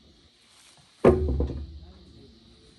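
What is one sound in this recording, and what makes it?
A small child slaps both hands down on a wooden table.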